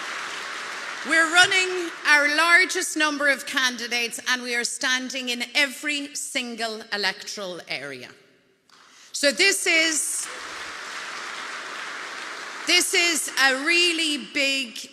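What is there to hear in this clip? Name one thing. A woman speaks forcefully into a microphone over loudspeakers.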